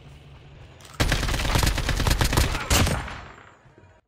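A rifle fires loud rapid bursts at close range.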